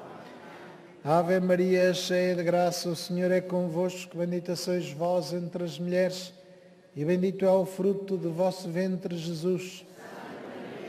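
A man chants through a loudspeaker, echoing in a large open space.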